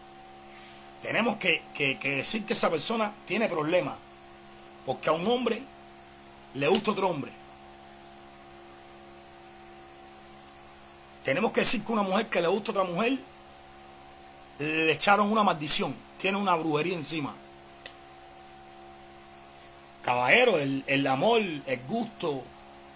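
A man talks with animation close to a microphone, in bursts with pauses.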